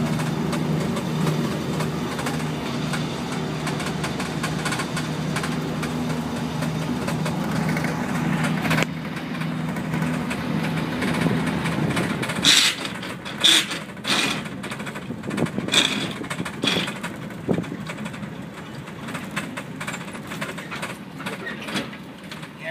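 The engine of an old Nissan Patrol hums from inside the cab as it drives along a street.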